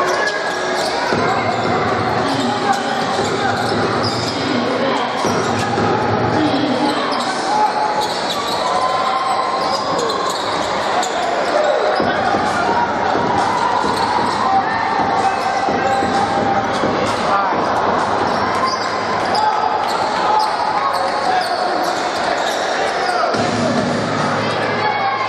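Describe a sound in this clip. A large crowd murmurs and cheers in an echoing hall.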